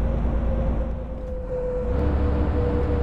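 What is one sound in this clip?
A diesel coach engine briefly dips and then picks up in pitch as it shifts gear.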